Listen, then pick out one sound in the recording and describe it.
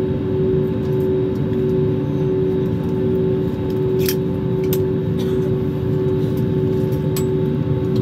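An airliner rumbles as it taxis over the runway.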